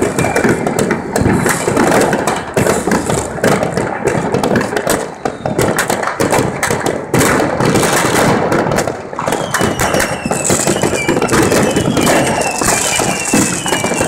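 Fireworks crackle and bang rapidly all around.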